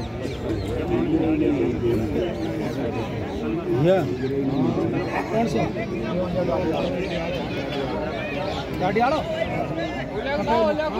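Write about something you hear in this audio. A large outdoor crowd of men chatters and shouts continuously.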